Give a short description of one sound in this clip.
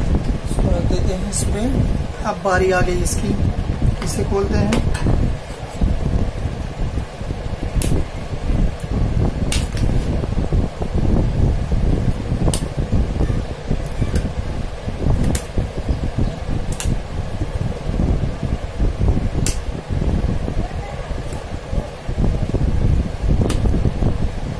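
Plastic parts click and snap.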